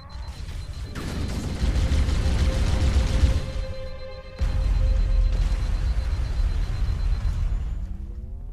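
A futuristic energy gun fires loud, roaring blasts.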